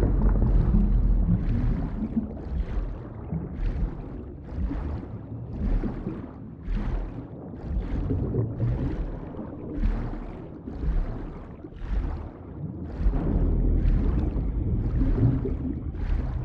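Footsteps run quickly over rock in a cave.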